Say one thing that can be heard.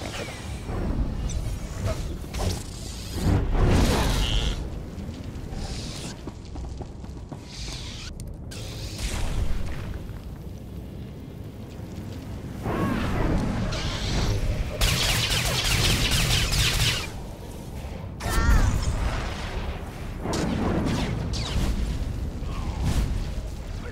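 Energy blasts crackle and burst loudly.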